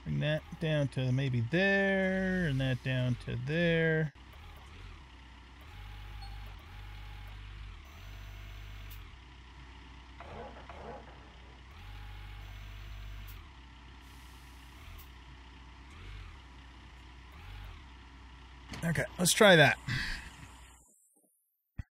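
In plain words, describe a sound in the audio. An excavator engine rumbles low and steady.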